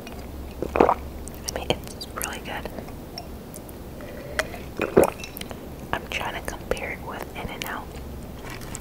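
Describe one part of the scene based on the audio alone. A young woman chews food with wet, crunchy sounds close to a microphone.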